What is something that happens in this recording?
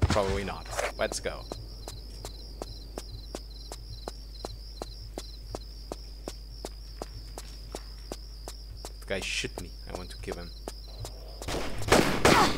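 Quick footsteps run steadily over a hard floor.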